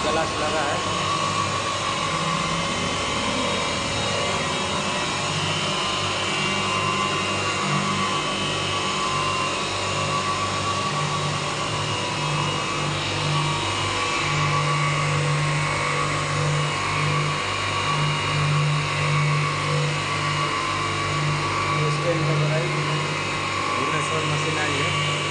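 Electric motors of a glass beveling machine hum.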